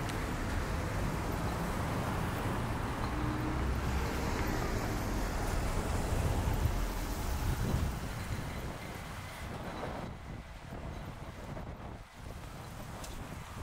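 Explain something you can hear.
A stroller's wheels roll over paving stones.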